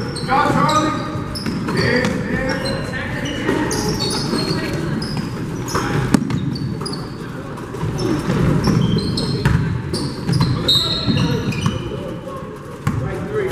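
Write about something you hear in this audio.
Young people call out and chatter in a large echoing gym.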